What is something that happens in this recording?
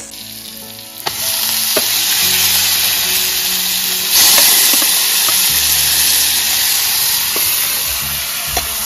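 Meat sizzles loudly in hot oil.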